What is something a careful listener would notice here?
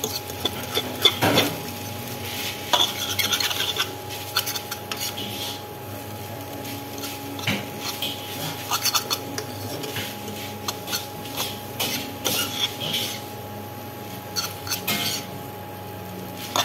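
A metal spatula scrapes and clacks against a wok while tossing noodles.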